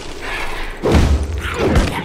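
A creature shrieks.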